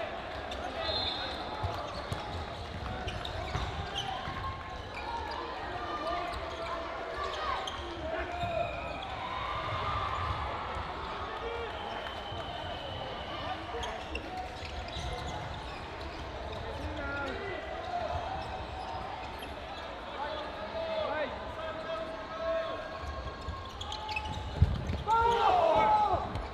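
Many people shout and call out across a large echoing hall.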